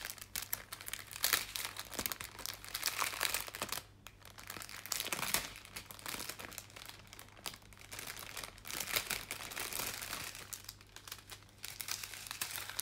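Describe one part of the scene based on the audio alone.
Hands crinkle and rustle thin plastic wrapping close by.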